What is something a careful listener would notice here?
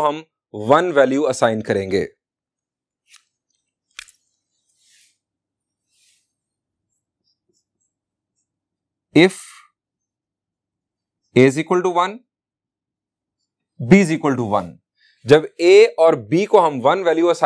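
A man speaks calmly and clearly into a close microphone, with pauses.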